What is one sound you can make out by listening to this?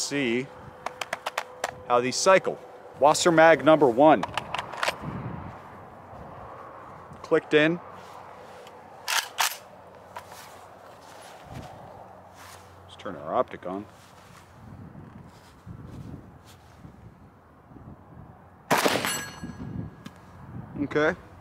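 A man talks calmly, close by and outdoors.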